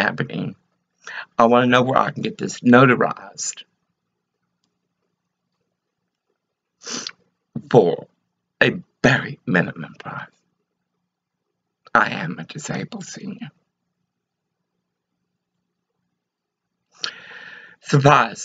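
An elderly woman speaks slowly and softly close to a microphone, with long pauses.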